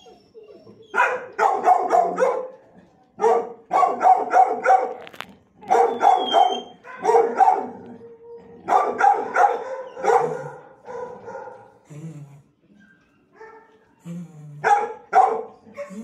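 A dog barks repeatedly in loud bursts, with an echo.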